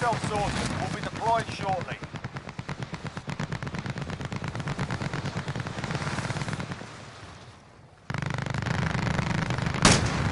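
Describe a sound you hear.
Wind rushes steadily past during a parachute fall.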